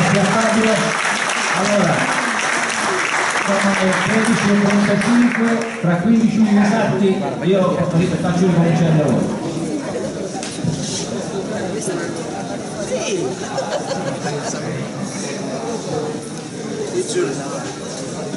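A crowd of men and women talk and shout loudly in a large echoing hall.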